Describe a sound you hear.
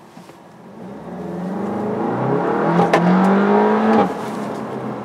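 A car engine revs up as the car speeds up.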